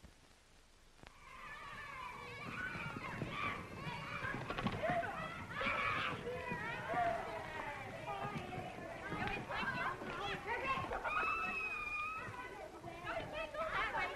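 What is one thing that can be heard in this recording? A crowd of children shouts and cheers excitedly outdoors.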